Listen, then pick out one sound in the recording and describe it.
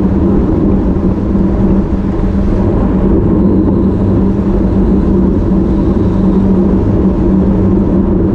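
Bicycle tyres hum steadily on the road.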